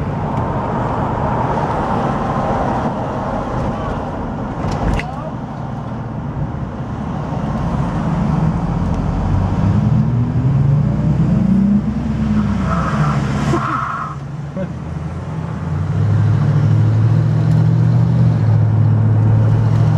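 A car engine hums and rumbles steadily from up close, rising and falling in pitch as it speeds up and slows.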